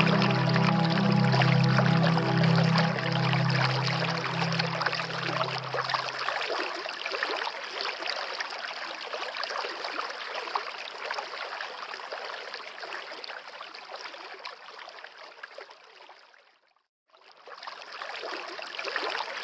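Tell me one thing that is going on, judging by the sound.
A stream of water babbles and splashes over rocks.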